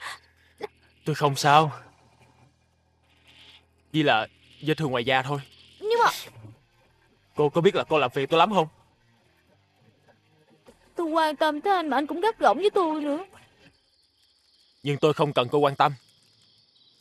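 A young man speaks in a tearful, pleading voice, close by.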